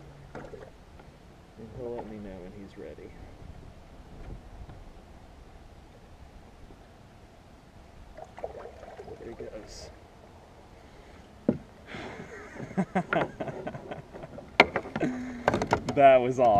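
A fishing reel clicks as a man winds it.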